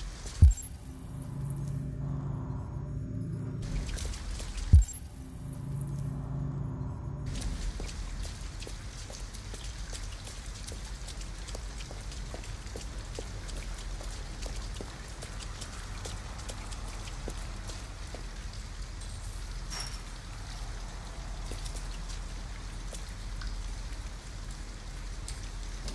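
Steady rain falls all around, outdoors.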